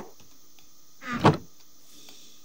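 A wooden chest thuds shut.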